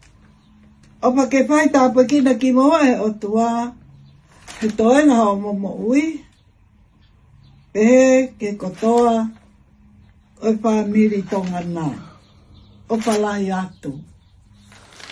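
An elderly woman speaks slowly and clearly close by, reading aloud.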